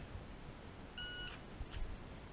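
An electronic shot timer beeps once.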